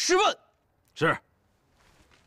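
A man says a short word in a low voice.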